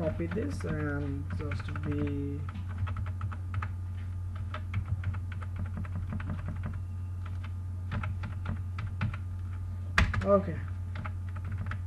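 Computer keys tap several times.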